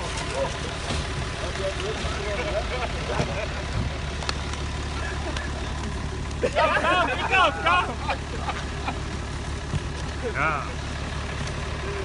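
Men talk and call out nearby outdoors.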